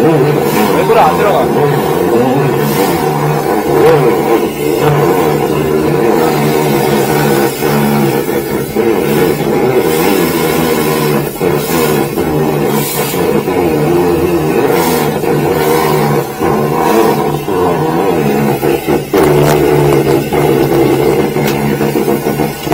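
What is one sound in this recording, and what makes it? A freezer compressor hums steadily nearby.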